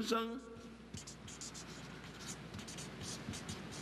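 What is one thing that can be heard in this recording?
A felt-tip marker squeaks and scratches across paper in short strokes.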